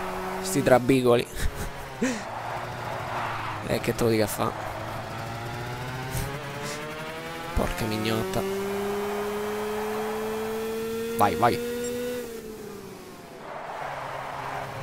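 A small kart engine buzzes steadily, its pitch rising and falling with speed.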